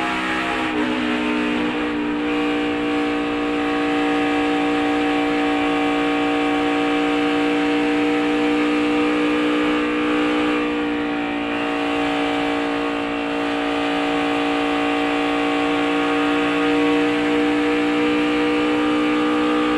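A race car engine roars loudly at high, steady speed.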